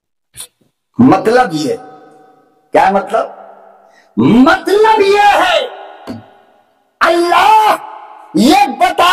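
An elderly man speaks forcefully into a microphone, his voice echoing through loudspeakers.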